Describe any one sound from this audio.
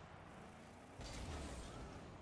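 A goal explosion booms.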